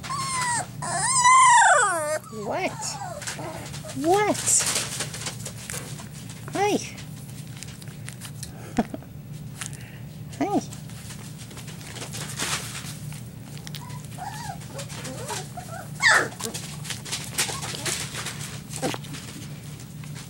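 A puppy whines and yelps in short, high cries.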